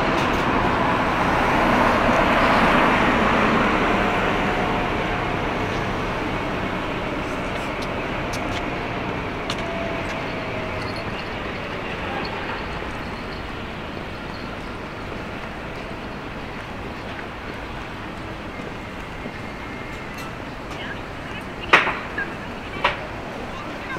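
Traffic rumbles steadily outdoors, loudest at first and slowly fading.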